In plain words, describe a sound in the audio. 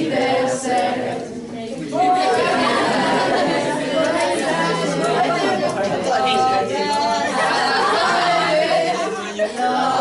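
Teenage girls laugh loudly nearby.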